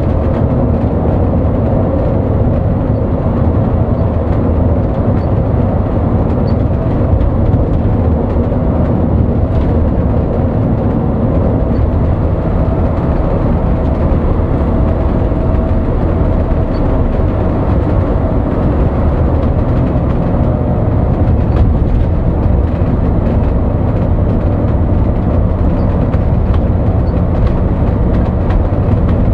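A bus engine hums steadily from inside the cab.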